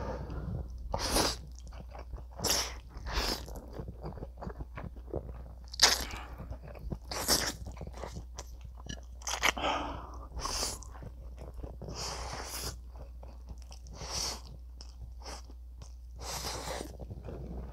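A man loudly slurps noodles up close.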